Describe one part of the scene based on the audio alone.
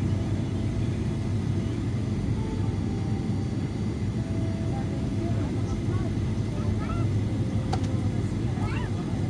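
An aircraft engine drones steadily and loudly.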